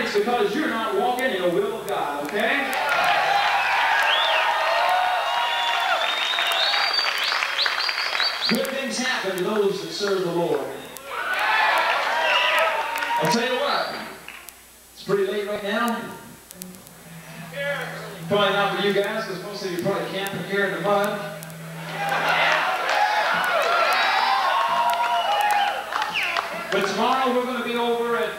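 A man sings loudly through a microphone over a loudspeaker.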